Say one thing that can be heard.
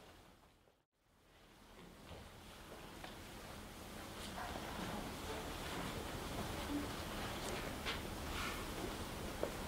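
A chamber orchestra plays softly in a large hall.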